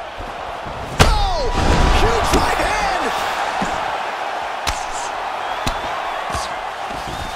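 A crowd roars and cheers loudly.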